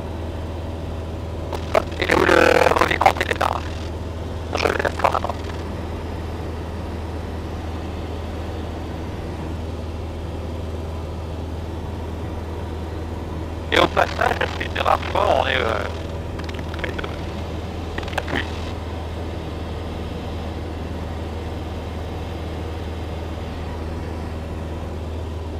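A small plane's engine drones steadily from inside the cockpit.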